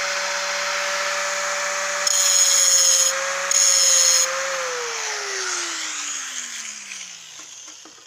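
An angle grinder whines as it spins freely, then winds down.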